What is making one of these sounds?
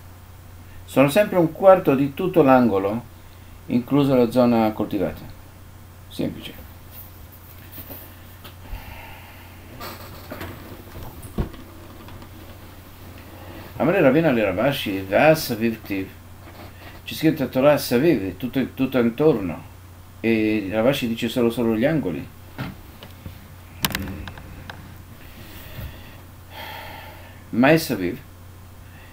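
An elderly man speaks calmly and closely into a microphone, in short bursts with pauses.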